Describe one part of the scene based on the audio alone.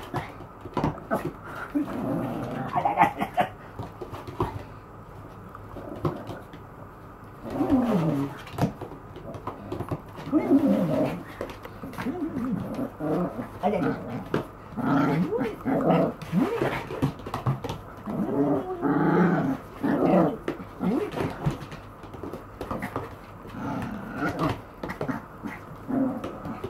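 A woman talks playfully to a dog close by.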